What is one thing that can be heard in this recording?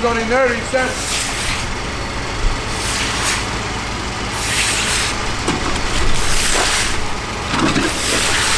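Water splashes and pours onto wet ground.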